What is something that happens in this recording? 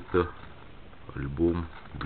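Scissors snip through plastic.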